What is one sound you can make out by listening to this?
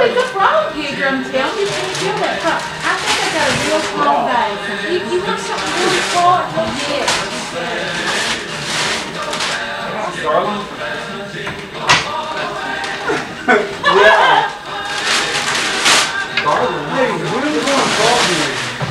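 Wrapping paper rustles and tears.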